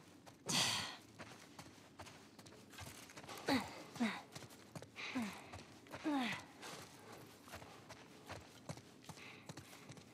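Footsteps walk steadily on a wooden floor.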